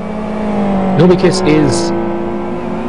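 Tyres squeal briefly as a racing car slides through a corner.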